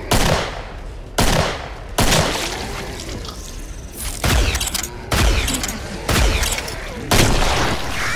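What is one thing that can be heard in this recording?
Gunshots ring out one after another, with loud echoing bangs.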